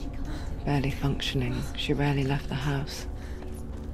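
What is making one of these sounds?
Footsteps crunch on wet sand and stones.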